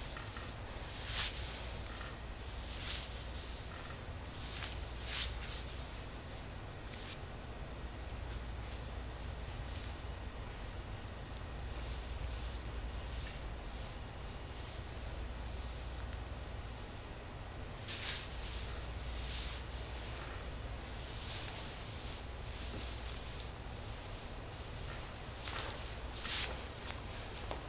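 Hands rub and pat against fabric close by.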